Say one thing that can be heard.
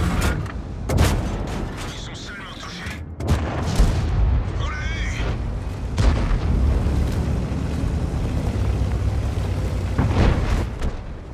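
Tank cannon shots boom sharply.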